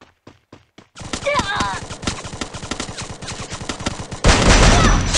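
A young man speaks through a headset microphone with animation.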